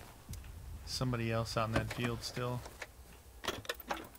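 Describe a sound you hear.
A car boot lid creaks open.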